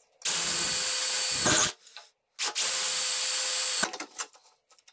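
A power drill whirs loudly in short bursts as a bit cuts through sheet metal.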